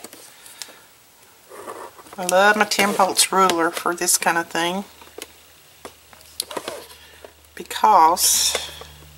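A pen scratches along cardboard.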